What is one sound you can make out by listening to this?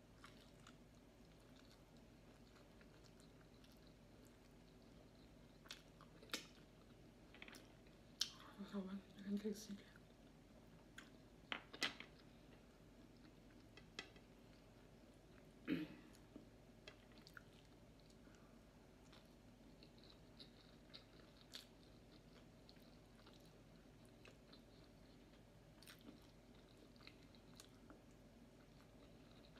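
A woman chews and smacks her lips close up.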